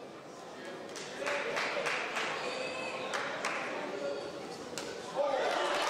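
A crowd cheers and shouts in a hall.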